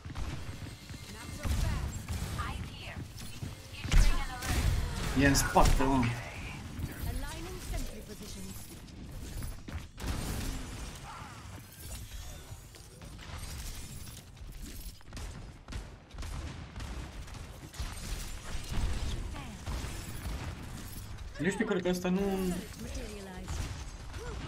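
Gunfire and shots crackle in a video game.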